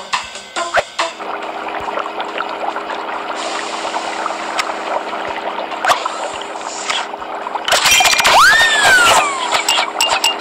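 Short game chimes and pops sound as buttons are tapped.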